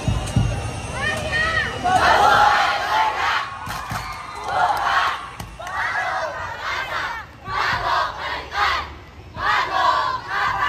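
A large group of young performers chants and shouts loudly in short bursts.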